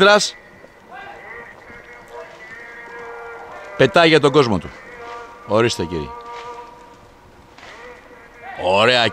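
A flock of geese honks loudly overhead, calls rising and falling in bursts.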